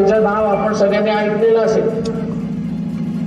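An elderly man speaks forcefully into a microphone over loudspeakers.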